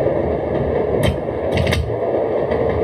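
A control lever clicks into place.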